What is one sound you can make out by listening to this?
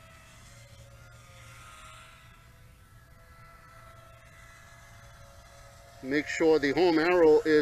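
A small drone's motors hum with a faint, steady whine.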